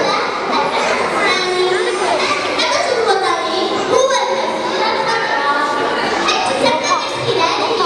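A woman speaks into a microphone over loudspeakers.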